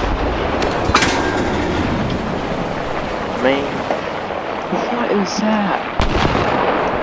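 Shells explode nearby with sharp bangs.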